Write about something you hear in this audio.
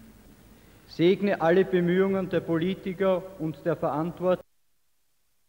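A man reads out through a microphone in a large echoing hall.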